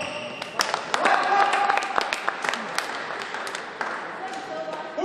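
Spectators clap and cheer in an echoing hall.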